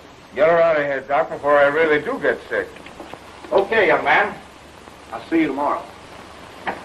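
A man speaks with animation on an old, hissy recording.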